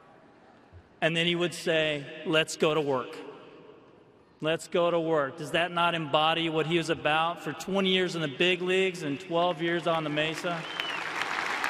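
A man speaks with emotion into a microphone, heard over loudspeakers in a large echoing space.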